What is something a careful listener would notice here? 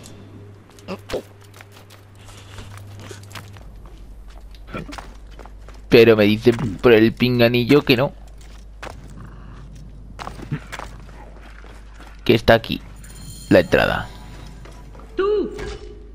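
Footsteps scrape and thud on stone.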